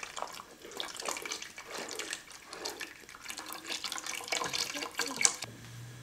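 Broth pours and splashes into a pot.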